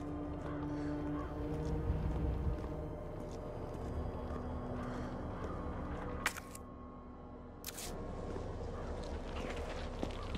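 Footsteps tread on wet pavement.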